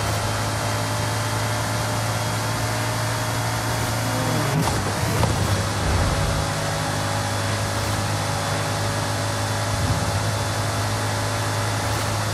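Wind rushes loudly past a speeding car.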